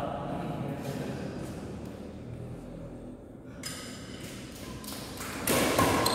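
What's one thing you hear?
Rackets hit a shuttlecock with light pops in an echoing hall.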